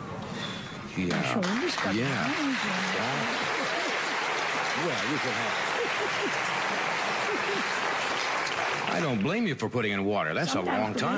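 An elderly woman speaks with animation into a microphone.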